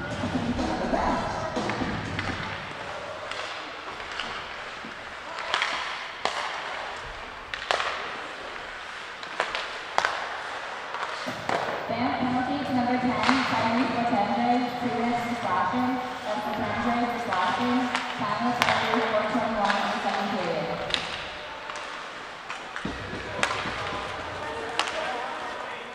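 Hockey sticks clack sharply against a puck on ice.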